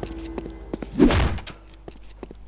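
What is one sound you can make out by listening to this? A door swings open with a loud whoosh.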